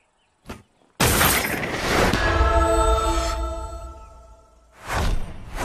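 A loud magical whoosh and shimmer swells up as items merge.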